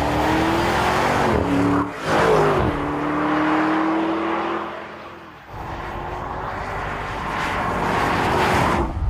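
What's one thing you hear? Tyres roar on asphalt.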